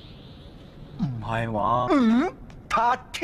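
A young man speaks with surprise.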